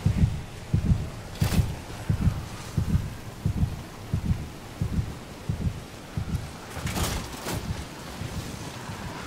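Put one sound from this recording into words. Heavy footsteps thud steadily on soft ground.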